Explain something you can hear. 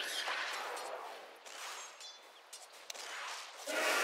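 Weapons clash in a skirmish.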